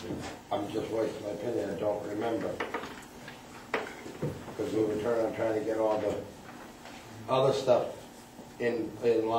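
A man speaks calmly, heard from across a room.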